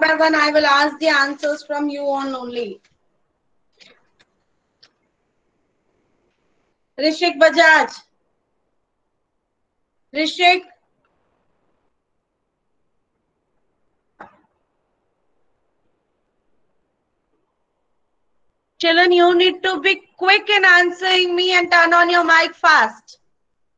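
A woman speaks through an online call microphone, explaining in bursts with pauses.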